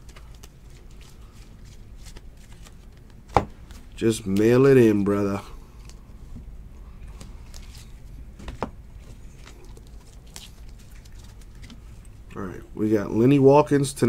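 Cards in plastic sleeves rustle and click as they are handled.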